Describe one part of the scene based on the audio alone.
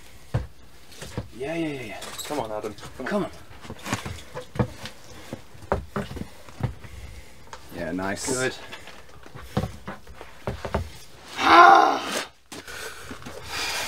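Hands slap and knock against climbing holds.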